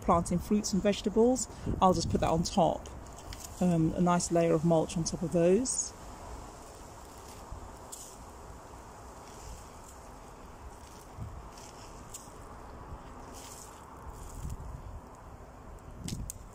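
A gloved hand rustles and scrapes through loose, crumbly compost.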